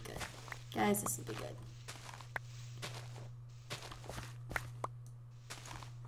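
Footsteps tread on grass and dirt.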